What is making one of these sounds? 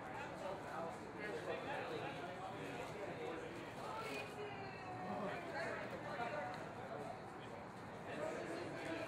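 Several men talk and call out to each other outdoors.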